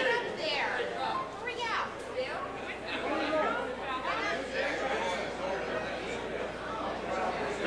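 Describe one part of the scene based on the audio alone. Several older men talk over one another with animation, close by.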